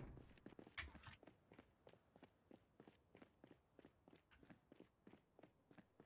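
Footsteps tap steadily on hard pavement.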